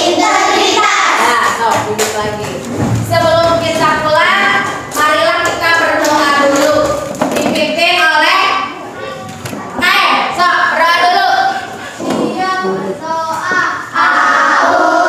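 A woman speaks with animation to a group of children.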